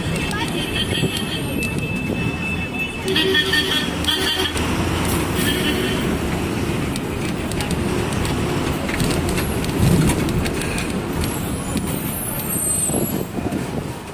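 Bus engines idle and rumble nearby.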